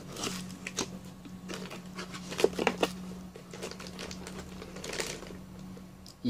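A cardboard box rustles and scrapes as hands open and fold its flaps.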